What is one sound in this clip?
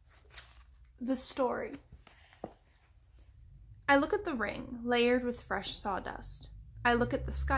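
A young woman speaks close by, calmly, as if reading aloud.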